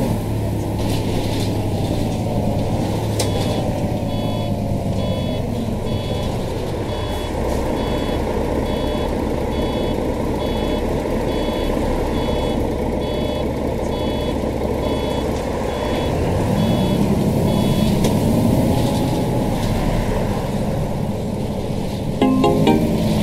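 A bus engine hums steadily and revs up as the bus pulls away.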